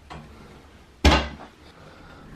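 A wheelchair bumps with a dull knock.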